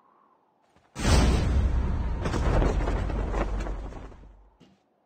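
A helicopter's rotor roars loudly close by, then fades.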